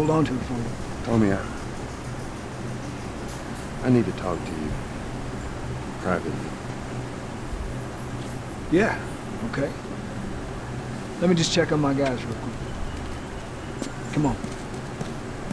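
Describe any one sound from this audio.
A man speaks calmly and quietly up close.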